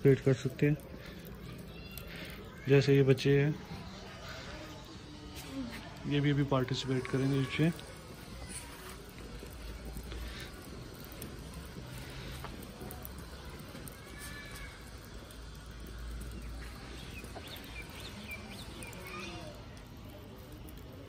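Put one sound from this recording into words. Charcoal fire crackles softly.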